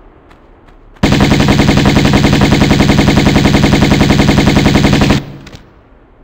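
Pistols fire in a rapid, loud burst.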